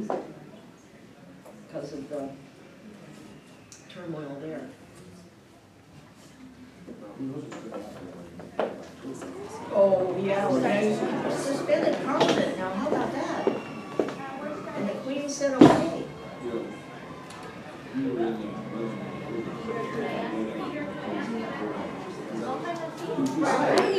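A woman speaks calmly at a distance.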